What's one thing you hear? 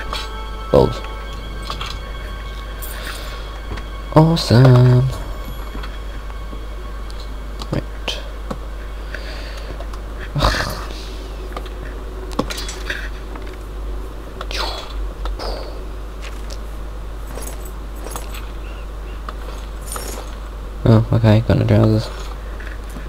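Short clicks and chimes sound one after another.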